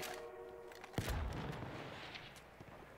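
A gunshot bangs and rumbles away.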